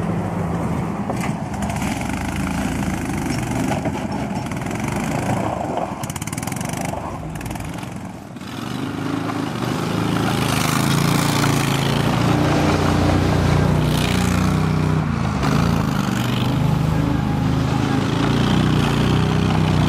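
A small tracked vehicle's engine runs and revs.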